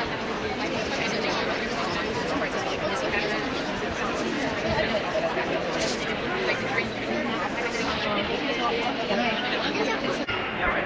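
A woman talks quietly close by.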